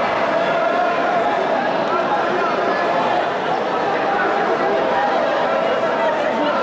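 A large crowd chatters and murmurs in a big echoing hall.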